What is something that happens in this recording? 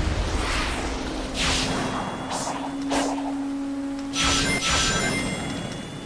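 Game sound effects whoosh as a character races along.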